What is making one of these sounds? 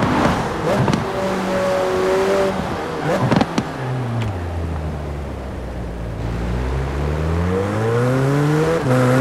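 Gear shifts cut the engine sound with short pops.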